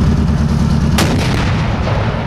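A cannon blank fires with a loud boom that echoes away.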